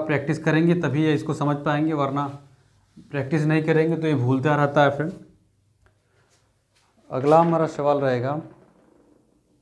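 A young man speaks clearly and with animation, close by.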